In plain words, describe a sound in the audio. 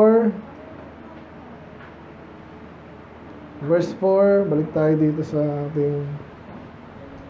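A man speaks through a microphone, with long pauses.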